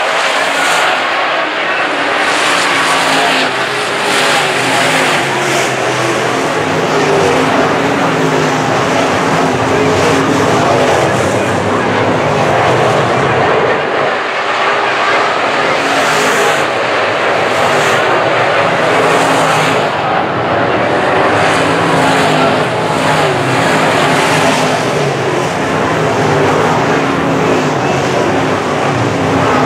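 Race car engines roar loudly around a dirt track outdoors.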